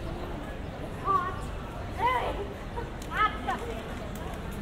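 A young woman exclaims loudly close by.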